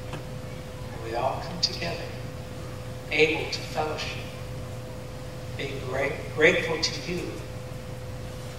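A man speaks in short bursts.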